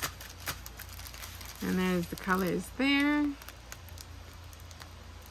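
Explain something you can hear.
A plastic packet crinkles as it is handled.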